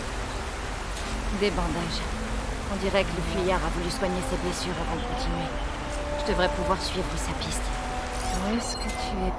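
A man talks calmly and close into a microphone.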